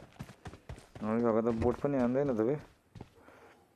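A young man speaks loudly into a microphone.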